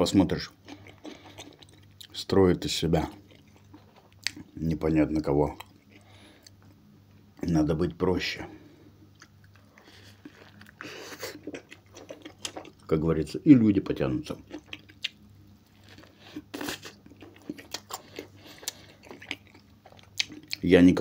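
A man chews and bites into food with wet smacking sounds.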